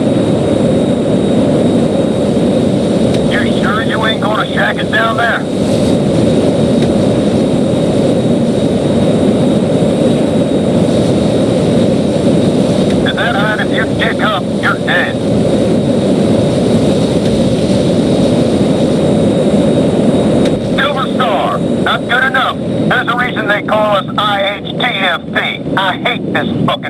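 A jet plane's engine roars steadily.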